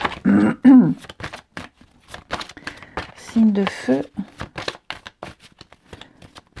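A deck of cards is shuffled with quick, crisp riffling clicks.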